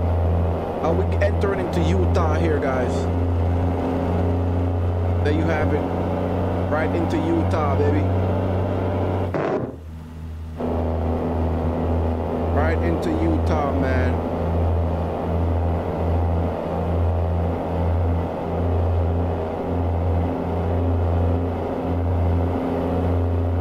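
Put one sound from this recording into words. A truck engine drones steadily at a low pitch.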